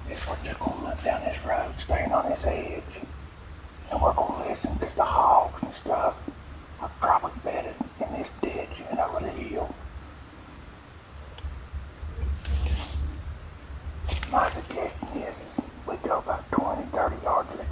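Footsteps crunch on leaves outdoors.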